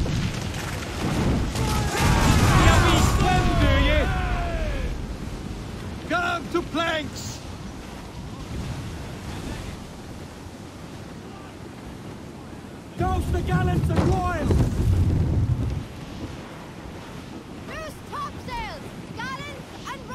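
Waves wash and splash against a ship's hull.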